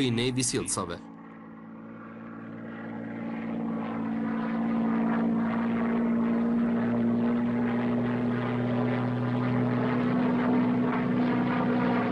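Propeller aircraft engines drone steadily and grow louder.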